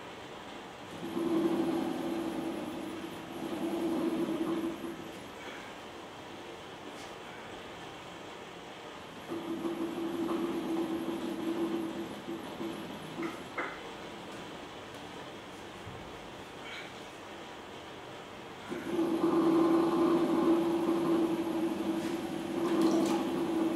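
A potter's wheel hums and whirs in bursts.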